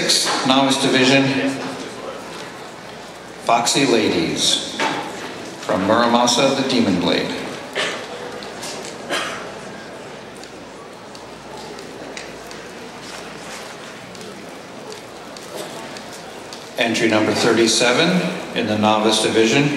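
A man speaks slowly and theatrically into a microphone in an echoing hall.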